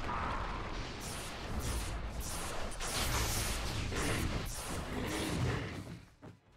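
Magic spells crackle and burst in a video game battle.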